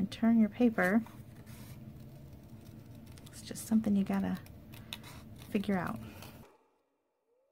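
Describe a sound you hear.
Scissors snip through thin card.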